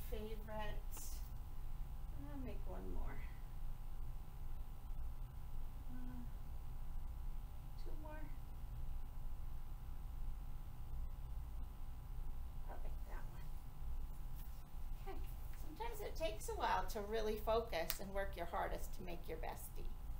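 A woman speaks calmly and clearly nearby, as if teaching.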